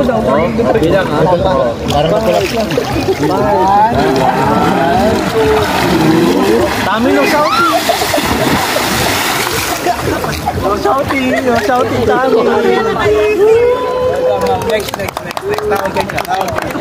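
A group of young people shout and cheer excitedly close by.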